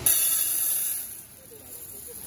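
Dry rice pours into a metal pot.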